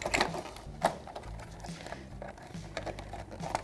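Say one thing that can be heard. A plastic package crinkles and rustles as it is handled.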